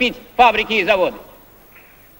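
A middle-aged man speaks forcefully through a microphone.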